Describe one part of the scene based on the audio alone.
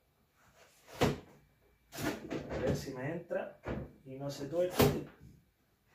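Plastic containers knock and clatter as they are handled.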